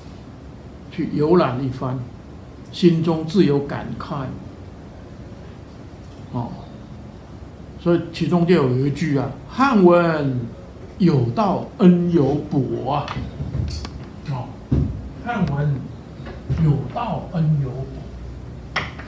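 An elderly man speaks calmly into a nearby microphone.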